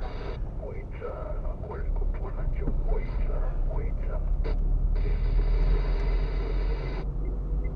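A car engine hums steadily from inside a slowly moving car.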